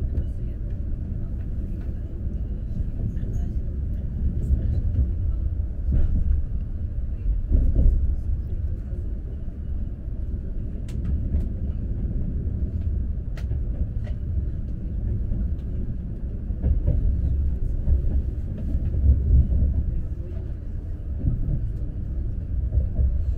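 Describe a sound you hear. Train wheels click and clatter on the rails.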